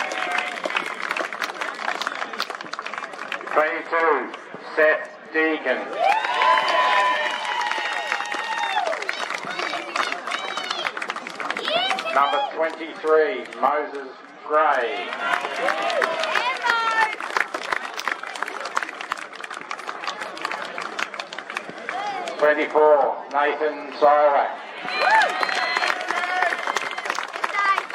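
A large crowd cheers and whoops.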